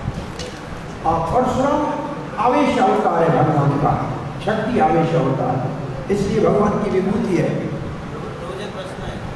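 An elderly man chants loudly into a microphone.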